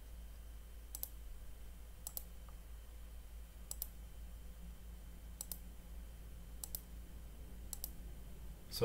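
A computer mouse clicks sharply a few times.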